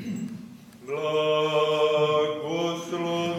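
A man sings a long, steady chant loudly nearby.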